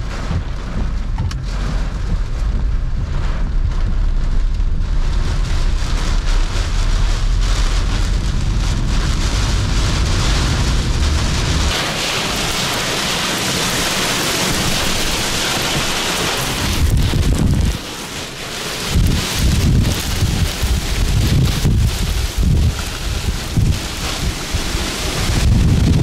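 Strong wind roars and buffets a car in gusts.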